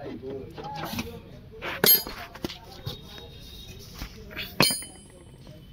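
Metal tools clank sharply against metal.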